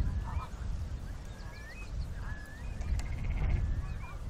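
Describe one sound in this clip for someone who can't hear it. Water splashes as a cow wades.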